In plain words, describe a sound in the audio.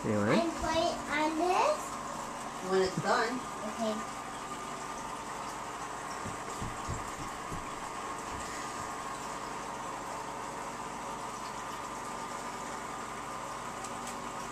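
Air bubbles gurgle softly in a fish tank.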